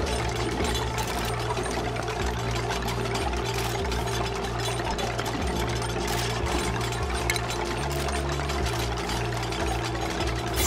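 Calm electronic game music plays with a steady pulsing bass.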